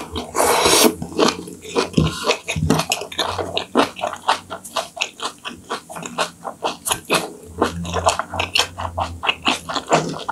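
A young woman chews wetly and smacks her lips close to a microphone.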